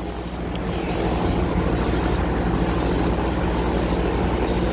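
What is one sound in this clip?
A laser engraver hums steadily as it works.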